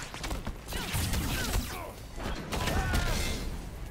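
A glowing energy burst crackles and booms.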